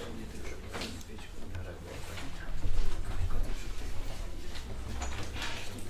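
Papers rustle.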